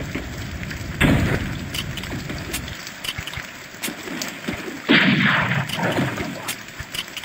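Explosions boom in quick bursts.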